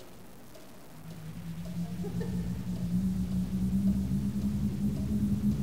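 Wind rustles a heavy curtain.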